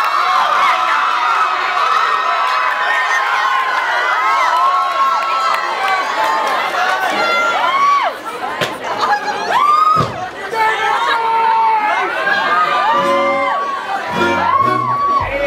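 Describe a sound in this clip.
A crowd cheers and screams loudly in a large hall.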